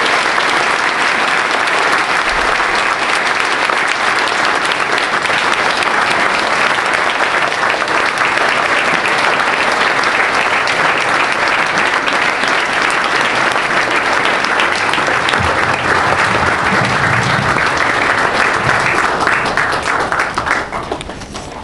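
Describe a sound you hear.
A large crowd applauds and cheers loudly in an echoing hall, then dies down.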